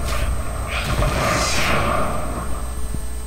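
An explosion bursts with a rushing roar.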